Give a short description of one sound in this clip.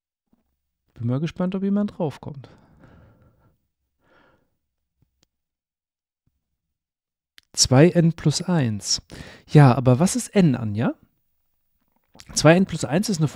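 A man speaks with animation into a close microphone, pausing between phrases.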